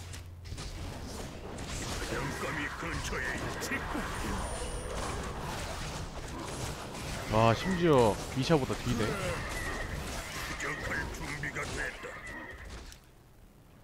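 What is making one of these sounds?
Swords clash and spells burst in a busy battle.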